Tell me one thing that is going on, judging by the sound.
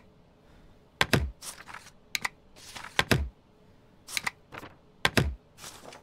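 A rubber stamp thuds down on paper.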